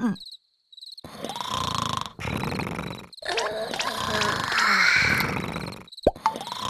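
A cartoonish male voice groans and mumbles with exaggerated expression.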